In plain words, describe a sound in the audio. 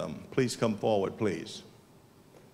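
An elderly man speaks into a microphone over loudspeakers in a large hall.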